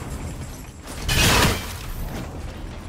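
An axe strikes with a loud icy crash.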